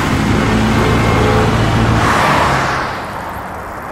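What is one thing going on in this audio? Car engines idle and rumble in traffic.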